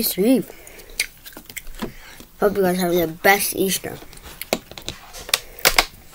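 A boy drinks from a plastic bottle.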